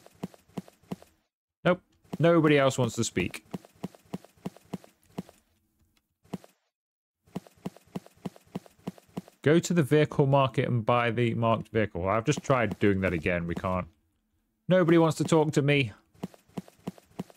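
Footsteps tap steadily on hard pavement.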